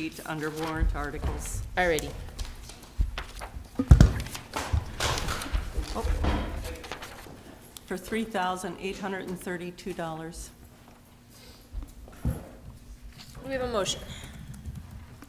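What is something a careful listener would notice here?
A woman speaks into a microphone in a large echoing room.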